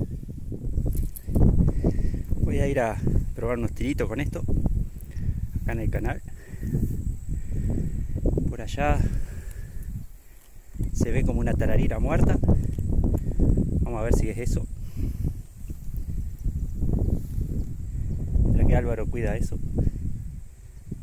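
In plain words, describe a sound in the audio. Wind blows and rumbles outdoors.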